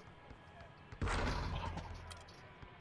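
A basketball slams through a rim with a loud clang.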